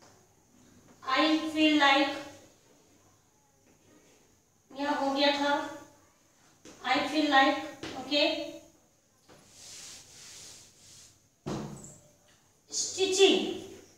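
A woman speaks calmly and clearly, as if teaching.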